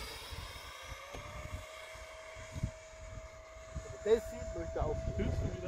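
An electric ducted-fan model jet whines as it flies overhead.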